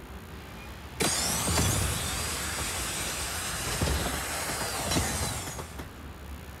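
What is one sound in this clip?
A jet thruster roars loudly, then fades.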